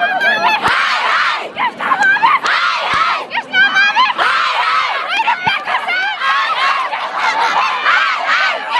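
A crowd of girls cheers and shrieks loudly, close by.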